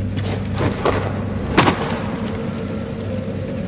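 Boots land with a heavy thud on rock.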